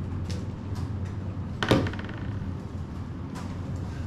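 A remote control is set down on a table with a knock.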